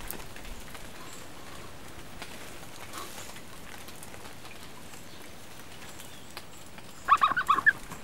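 Rain patters steadily on forest leaves.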